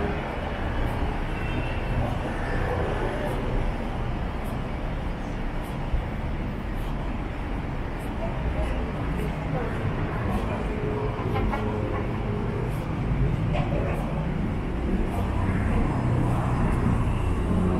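Footsteps tap on a paved pavement.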